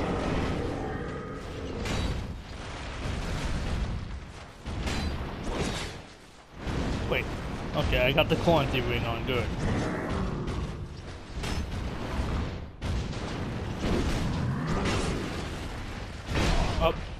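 Metal blades clash and strike in a sword fight.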